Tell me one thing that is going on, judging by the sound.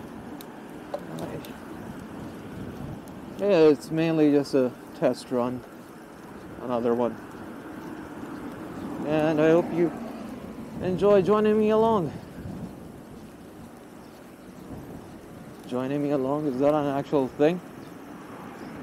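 A bicycle rolls steadily along a paved path.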